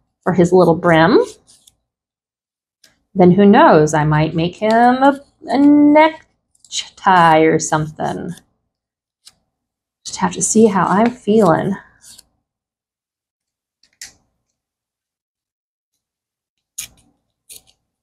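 Paper rustles and crinkles softly between fingers.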